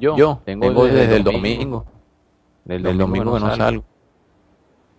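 A young man speaks loudly and with animation into a headset microphone.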